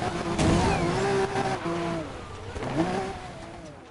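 Tyres screech on wet asphalt.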